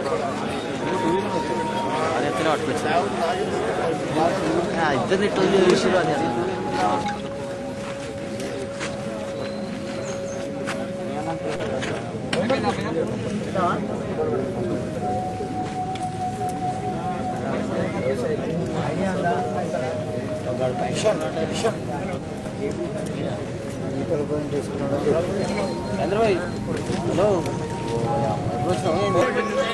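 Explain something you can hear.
A crowd of men talks over one another nearby, outdoors.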